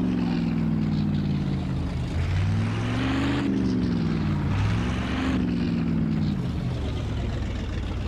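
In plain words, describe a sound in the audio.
A car engine hums and revs as the car drives along.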